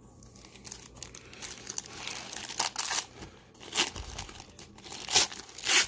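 A plastic wrapper crinkles and tears open.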